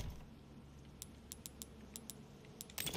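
Short menu clicks tick one after another.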